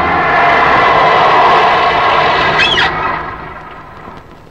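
A car engine hums as a car drives up.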